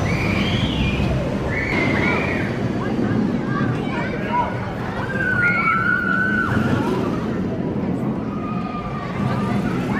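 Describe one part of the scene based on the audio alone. A roller coaster train roars and rattles along its steel track.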